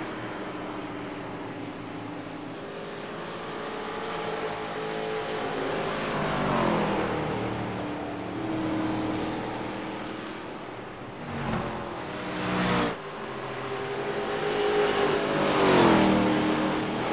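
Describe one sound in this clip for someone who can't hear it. Race car engines roar steadily, with pitch rising and falling.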